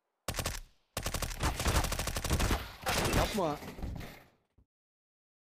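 A young man shouts excitedly into a microphone.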